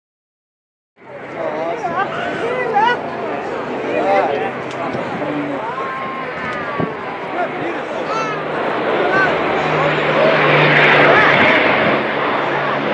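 A jet engine roars overhead, growing louder.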